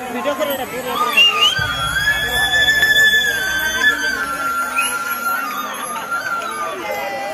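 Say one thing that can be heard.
Loud music with a melody plays through loudspeakers.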